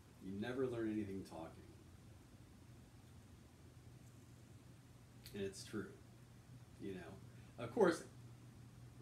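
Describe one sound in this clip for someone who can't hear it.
A man speaks calmly and close by, with pauses.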